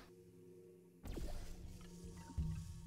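A portal gun fires with an electric zap.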